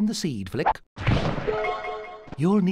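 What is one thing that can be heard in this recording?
A cartoon jump sound effect plays as a game character leaps.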